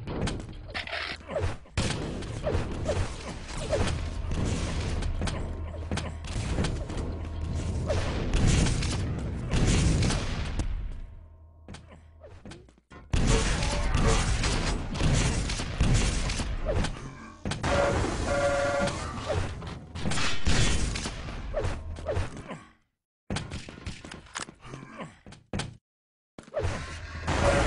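Rapid gunshots and blasts ring out in a game.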